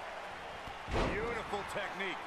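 A body slams heavily onto a ring mat.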